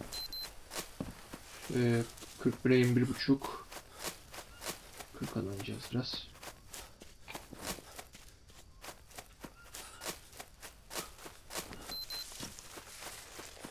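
Leafy plants rustle as they are brushed aside.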